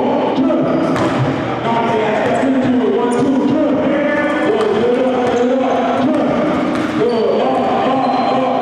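Basketballs bounce on a hardwood floor in an echoing hall.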